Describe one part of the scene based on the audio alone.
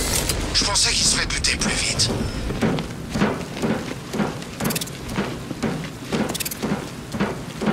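Heavy footsteps thud on a hard roof.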